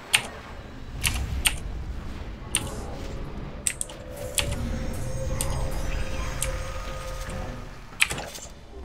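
Magic spells crackle and hum.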